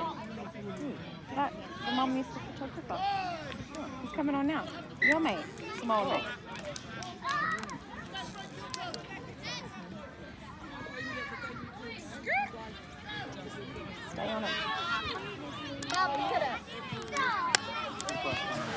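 Young players call out to each other across an open field.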